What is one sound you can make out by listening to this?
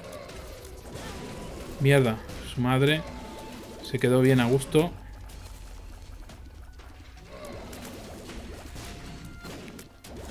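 Small shots pop and splat in a video game.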